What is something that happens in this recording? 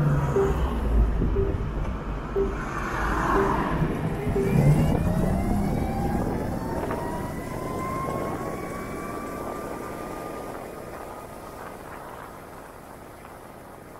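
A motorcycle engine hums and whines higher as it speeds up.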